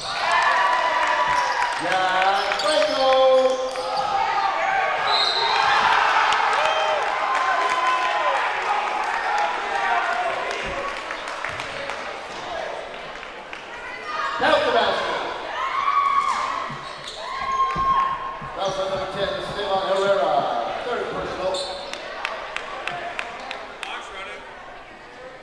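A crowd of spectators cheers and shouts in a large echoing gym.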